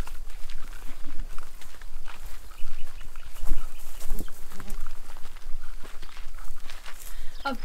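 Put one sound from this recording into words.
Footsteps crunch through dry grass and stones.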